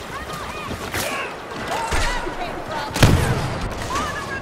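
Blaster shots fire in quick bursts.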